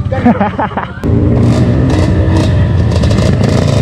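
Dirt bikes rev and ride off.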